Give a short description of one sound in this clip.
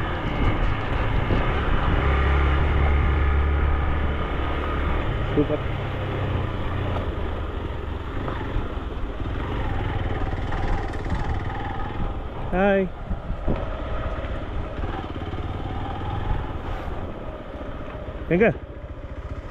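Tyres crunch over a rough dirt road.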